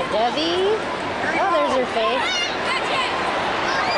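Children talk and call out nearby.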